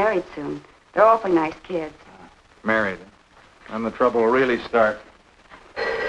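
A man speaks calmly and pleasantly nearby.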